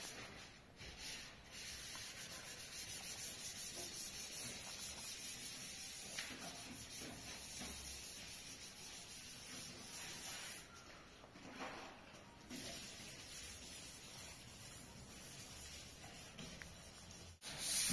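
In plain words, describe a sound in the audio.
A wet cloth rubs against a car's body.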